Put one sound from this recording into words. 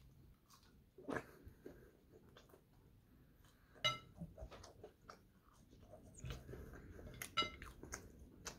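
Crisp fries crunch as a young man bites into them.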